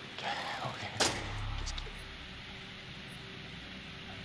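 A metal door bolt clanks.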